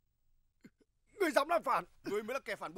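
A man speaks in a tense, low voice, close by.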